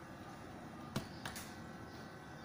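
Headphones are set down on a hard surface with a light knock.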